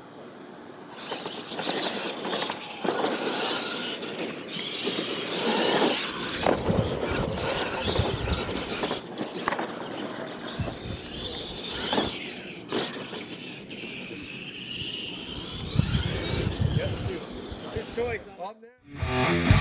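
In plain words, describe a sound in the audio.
Small electric motors whine as radio-controlled trucks race over dirt.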